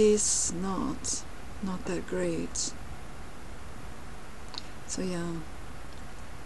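A young woman speaks quietly and casually, close to a microphone.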